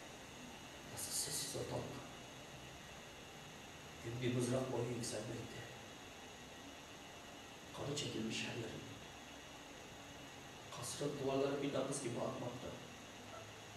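A man speaks calmly and slowly in short phrases with pauses, close to a microphone.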